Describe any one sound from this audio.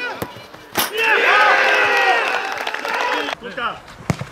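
Men cheer loudly together.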